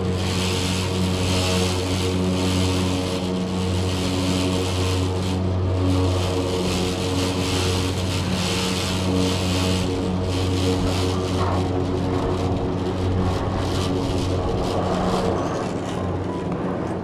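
A large cable wheel turns with a steady mechanical hum and whir.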